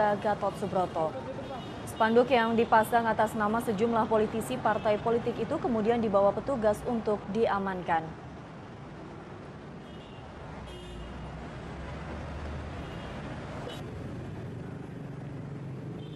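Traffic hums steadily on a nearby road.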